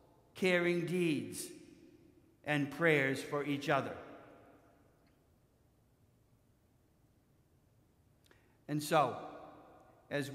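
An elderly man chants slowly through a microphone with an echo.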